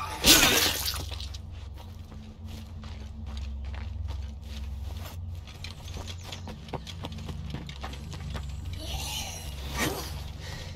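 Footsteps crunch over grass and dirt at a steady walking pace.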